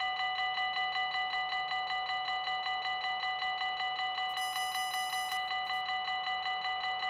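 A level crossing bell rings rapidly and steadily.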